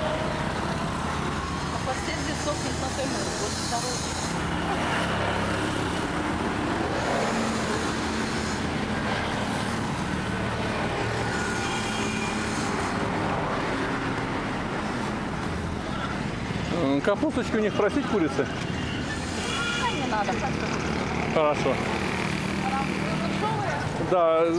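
A motorcycle buzzes past.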